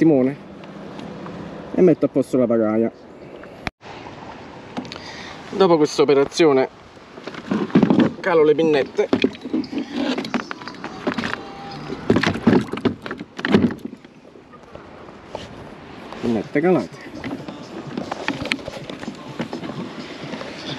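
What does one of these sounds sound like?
Water laps gently against a kayak's hull.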